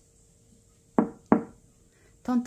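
Knuckles knock twice on a refrigerator's glass door.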